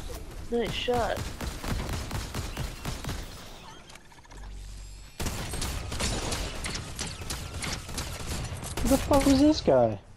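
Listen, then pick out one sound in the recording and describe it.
A scoped rifle fires sharp shots.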